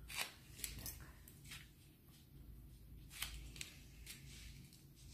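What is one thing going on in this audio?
Scissors snip through hair in short, crisp cuts.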